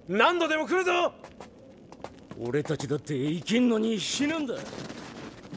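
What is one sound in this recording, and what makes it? A man speaks urgently and firmly.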